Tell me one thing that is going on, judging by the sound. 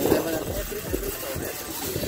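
A shopping cart rattles as it rolls over asphalt.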